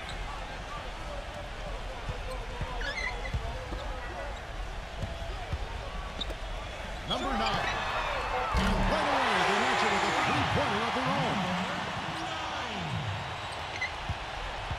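A crowd roars in a large arena, swelling louder for a while.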